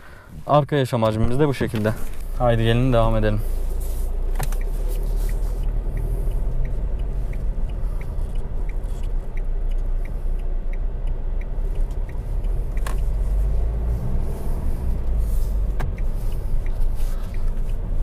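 A car engine hums steadily from inside the cabin.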